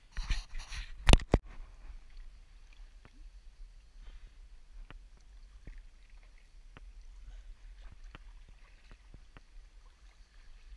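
A paddle splashes gently in calm water.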